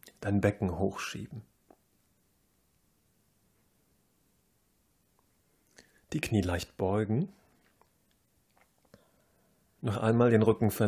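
A man speaks calmly and slowly, close by, with long pauses.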